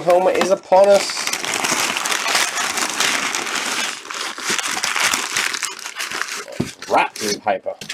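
Packing paper crinkles and rustles loudly.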